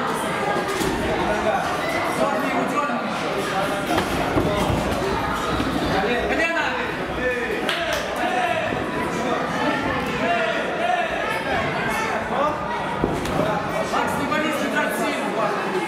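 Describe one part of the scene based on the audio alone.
A large crowd chatters and calls out in an echoing hall.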